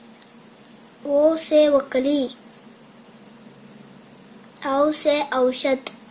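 A young boy speaks clearly and close by.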